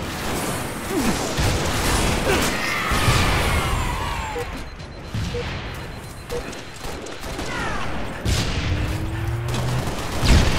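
Gunfire bursts out in quick shots.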